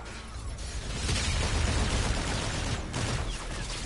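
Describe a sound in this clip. A rifle fires rapid shots.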